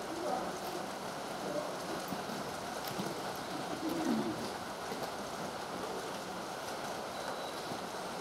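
A train rumbles as it approaches from a distance.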